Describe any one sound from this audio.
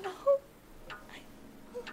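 A young woman cries out in distress close by.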